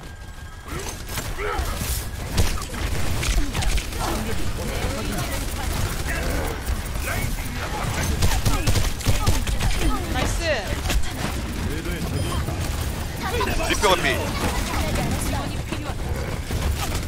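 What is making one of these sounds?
Rapid gunfire and energy blasts crackle in a video game.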